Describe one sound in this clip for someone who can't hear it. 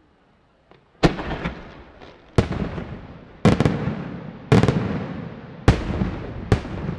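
Fireworks explode with loud, booming bangs that echo outdoors.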